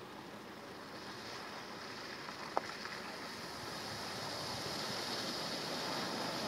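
Tyres splash through muddy puddles.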